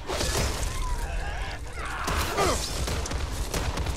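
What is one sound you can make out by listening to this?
A sledgehammer thuds heavily into flesh.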